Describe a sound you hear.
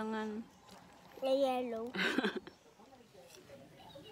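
A woman bites into crunchy fruit.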